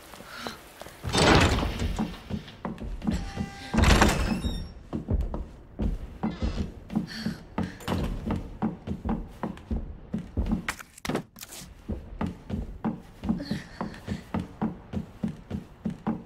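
Footsteps thud steadily across a hard floor.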